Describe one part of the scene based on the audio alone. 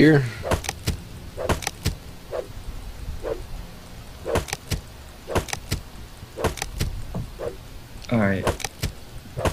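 An axe chops into wood with repeated dull knocks.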